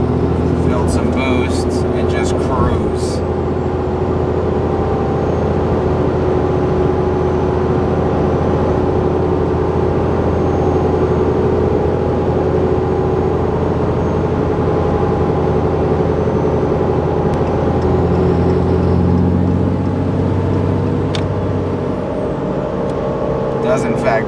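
Tyres roar on the road at speed.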